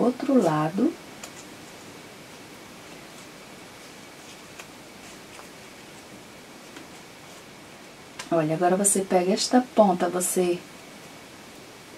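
Satin ribbon rustles softly between fingers.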